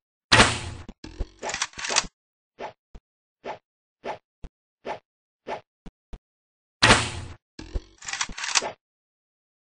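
A grappling gun fires with a sharp whoosh.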